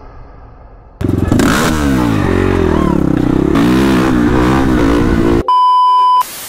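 A motorcycle engine revs nearby.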